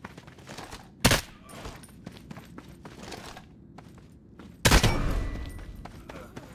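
A rifle fires close by with a sharp crack that echoes.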